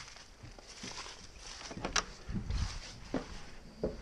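A wooden door creaks and rattles open.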